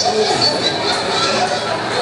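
Men talk through a television loudspeaker.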